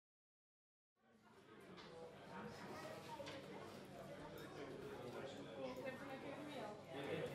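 A crowd of men and women chatter indoors, their voices overlapping in a murmur.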